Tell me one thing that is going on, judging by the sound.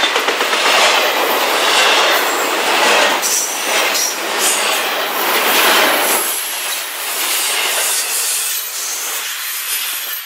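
A freight train rumbles past close by, wheels clattering and squealing on the rails.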